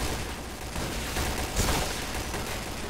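A rifle fires a short burst.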